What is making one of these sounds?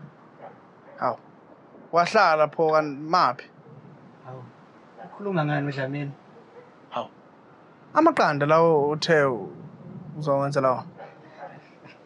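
A man speaks calmly.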